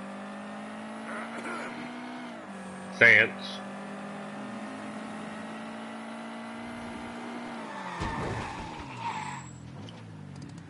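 A car engine hums steadily, revs, then slows and stops.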